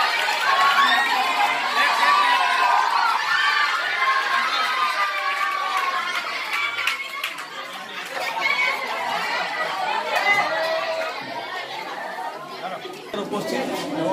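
A group of people sing together.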